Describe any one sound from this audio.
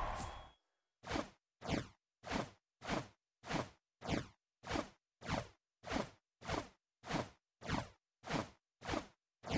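A steady, punchy dance beat plays in quick, even pulses.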